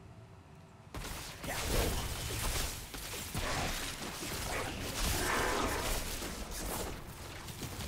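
Crackling electric blasts zap and buzz loudly in a game fight.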